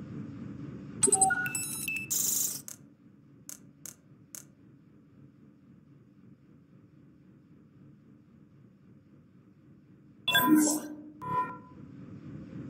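Short electronic beeps and chimes sound from a game menu.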